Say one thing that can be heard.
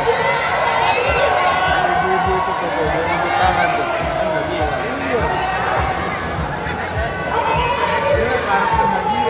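A young woman speaks with animation into a microphone, heard through loudspeakers in a large echoing hall.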